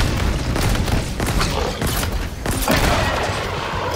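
Plasma weapons fire in rapid bursts with loud crackling blasts.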